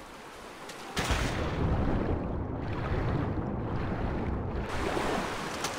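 Water gurgles and rumbles in a muffled way, as if heard from below the surface.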